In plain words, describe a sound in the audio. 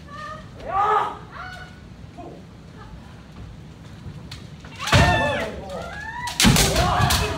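Several men shout loud, drawn-out cries in a large echoing hall.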